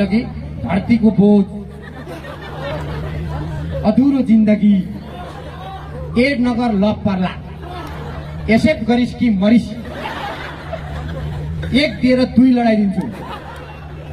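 A young man talks with animation into a microphone, heard through loudspeakers in short bursts.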